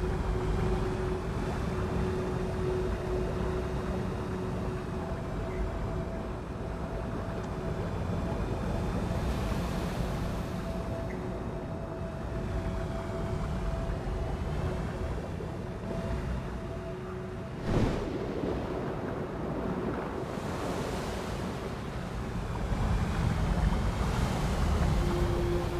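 Water rushes steadily around a swimming diver.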